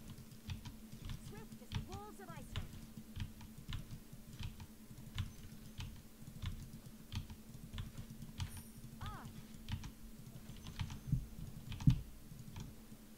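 Sharp game attack sounds click and thud in a quick, steady rhythm.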